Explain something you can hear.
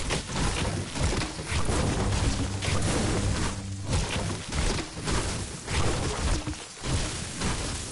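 Gunshots crack and hit in a video game.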